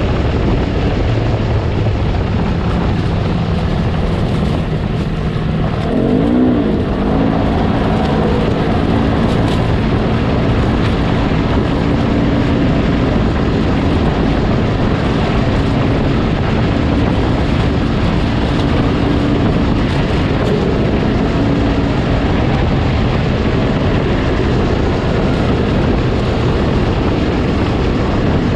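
An engine roars steadily close by as a vehicle drives over rough ground.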